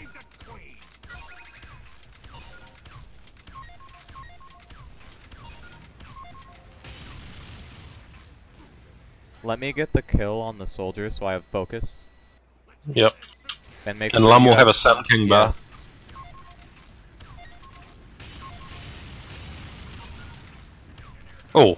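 A sniper rifle fires sharp shots.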